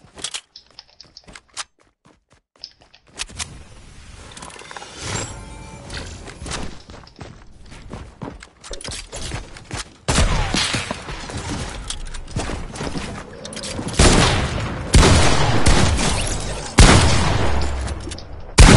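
Quick clicks and clatters of pieces being built sound in a video game.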